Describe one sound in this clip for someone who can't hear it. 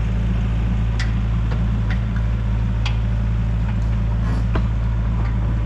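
A machine arm clanks and knocks with sharp metal sounds.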